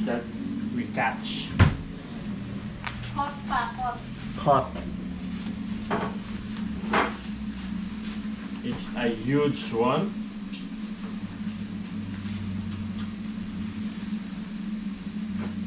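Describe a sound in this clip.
Plastic bags rustle and crinkle as they are pulled from a large fish.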